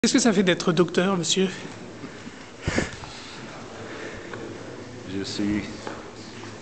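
An elderly man speaks warmly, close by.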